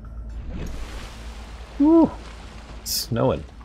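Water rushes and bubbles.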